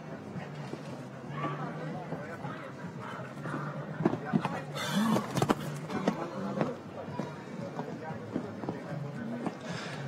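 A horse's hooves thud on soft sand as it gallops and jumps.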